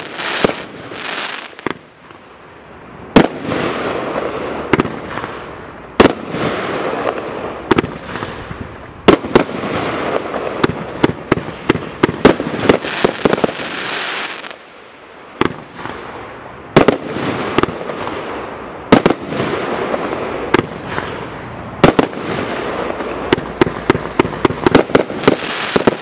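Firework bursts crackle and fizz overhead.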